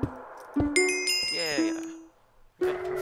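A chime of game tones rings out.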